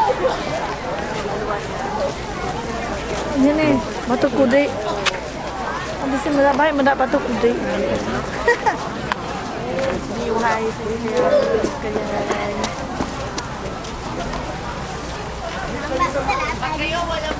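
Several women chatter and call out outdoors.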